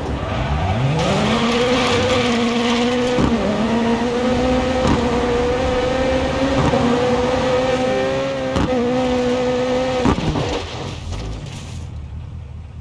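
Tyres screech and skid on pavement.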